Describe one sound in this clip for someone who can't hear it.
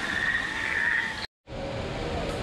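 Water splashes down a small waterfall.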